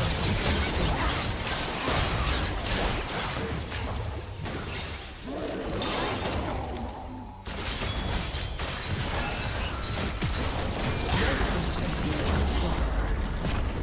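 Video game combat sound effects of spells, blasts and strikes play in quick succession.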